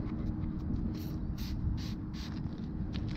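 A spray bottle squirts liquid in short hissing bursts.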